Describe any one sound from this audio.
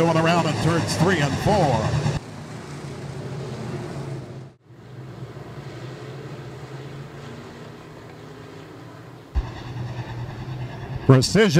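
Racing car engines roar steadily.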